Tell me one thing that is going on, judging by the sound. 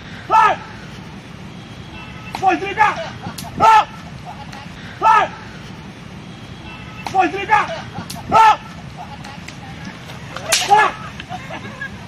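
A man calls out loudly outdoors in short repeated shouts.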